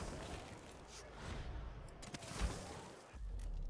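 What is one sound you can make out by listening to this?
A magical whoosh rushes past.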